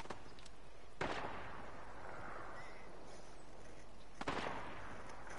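A rifle fires single loud shots that echo away.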